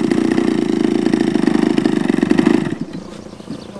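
A small model airplane engine runs with a loud, rattling buzz, then cuts out.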